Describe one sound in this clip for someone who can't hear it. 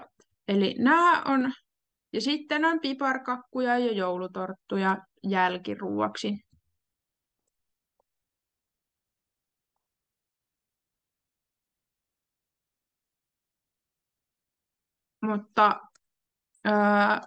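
A young woman speaks calmly into a microphone, heard over an online call.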